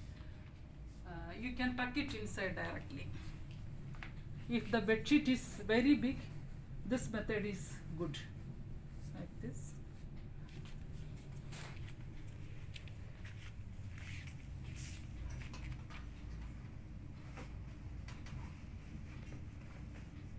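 Fabric rustles as a bed sheet is tucked and smoothed.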